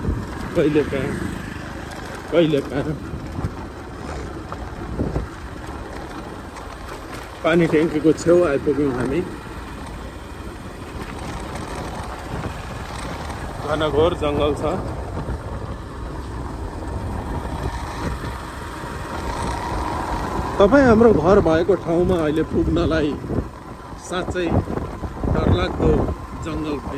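A small three-wheeled vehicle's engine rumbles steadily as it drives along.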